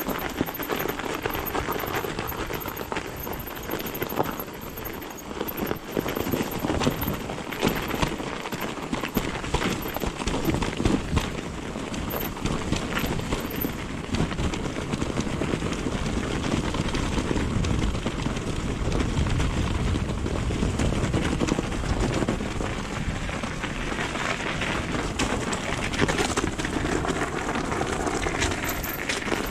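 A bicycle chain and frame rattle over bumps.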